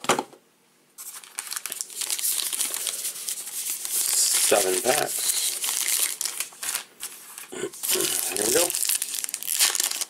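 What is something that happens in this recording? Trading cards flick and rustle as they are shuffled.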